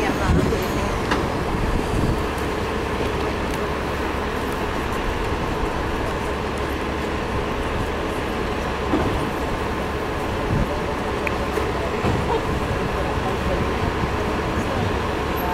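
A diesel city bus idles.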